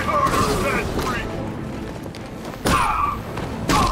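Blows land with heavy thuds in a brawl.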